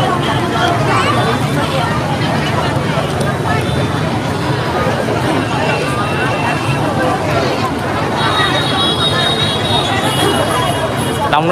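A large crowd of young women and men chatter and call out loudly outdoors, close by.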